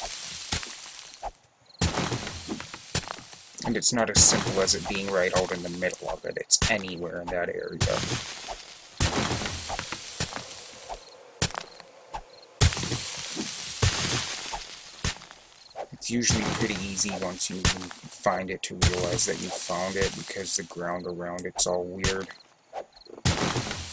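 A shovel digs into earth with dull scraping thuds.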